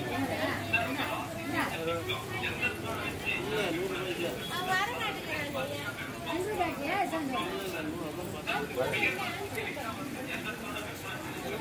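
A crowd of men and women chatter close by, outdoors.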